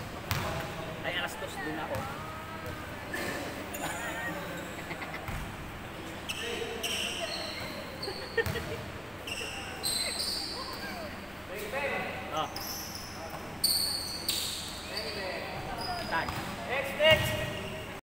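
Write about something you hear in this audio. Sounds echo around a large indoor hall.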